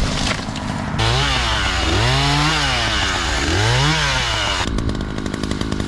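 A chainsaw engine revs up and down loudly.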